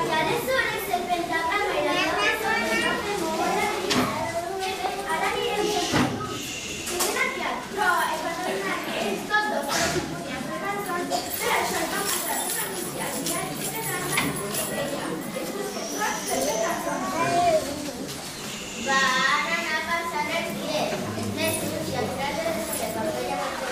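A group of young children sings together.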